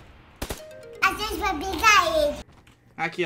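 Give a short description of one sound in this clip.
A small child speaks in a high voice close by.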